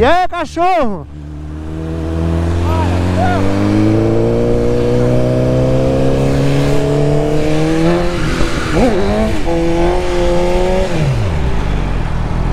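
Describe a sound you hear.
A motorcycle engine roars as it speeds up through the gears.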